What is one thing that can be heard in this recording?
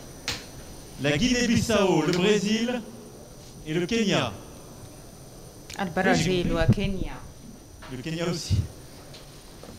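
A middle-aged man speaks into a microphone in a large, echoing hall, in short, emphatic bursts.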